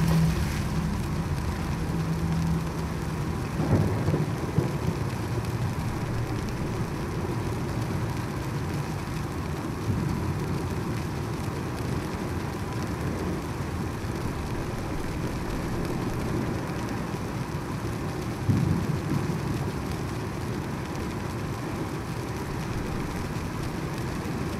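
A fire crackles and roars steadily in a barrel.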